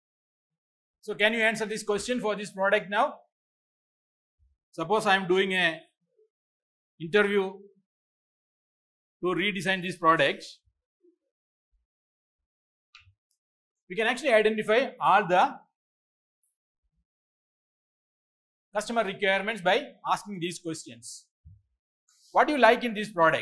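A middle-aged man lectures calmly into a close microphone, speaking in short bursts with pauses.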